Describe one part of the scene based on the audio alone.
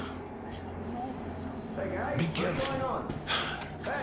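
An elderly man speaks in a gruff, low voice.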